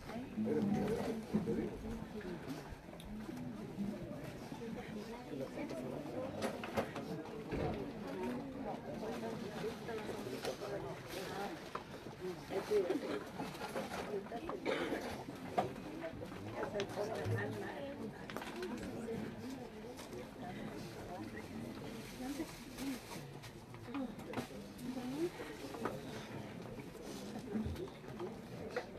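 A crowd of adults murmurs and talks quietly nearby, outdoors.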